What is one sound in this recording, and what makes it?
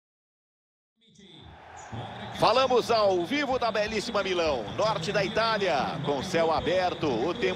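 A large stadium crowd roars and chants.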